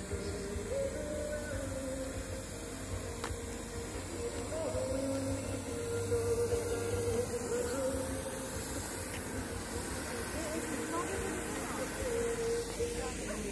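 Music plays from a distant outdoor stage.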